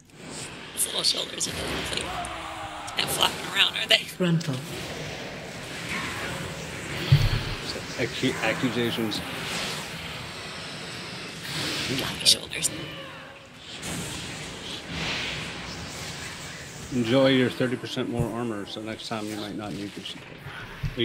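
Game spell effects whoosh and clash in quick bursts.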